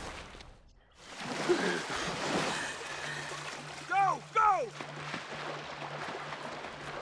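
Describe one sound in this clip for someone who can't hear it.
Water splashes and sloshes as two swimmers paddle through it.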